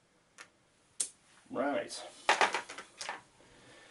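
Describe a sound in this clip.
A small game piece is set down on a table with a light tap.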